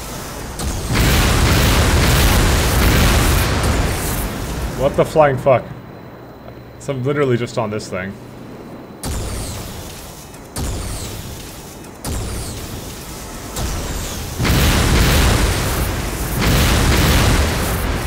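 An explosion rumbles loudly.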